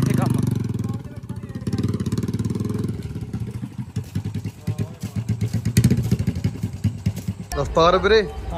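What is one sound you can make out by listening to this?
A motorcycle engine idles and putters as a bike rides away.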